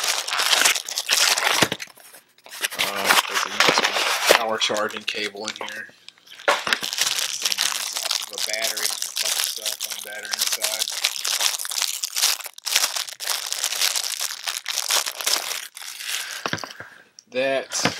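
A plastic wrapper crinkles and rustles loudly close by.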